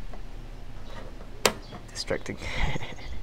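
A multimeter dial clicks as it is turned.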